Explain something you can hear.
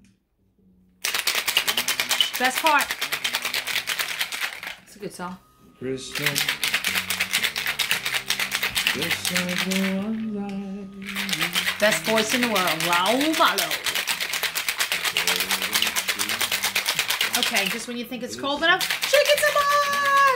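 Ice rattles hard and fast inside a metal cocktail shaker.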